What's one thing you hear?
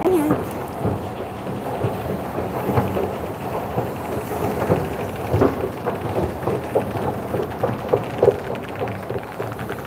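An escalator rumbles and clatters steadily underfoot.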